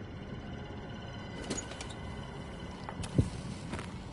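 A metal door latch clicks and clanks.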